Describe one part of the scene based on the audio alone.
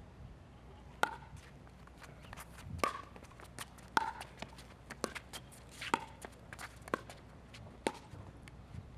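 Paddles hit a plastic ball with sharp pops, back and forth.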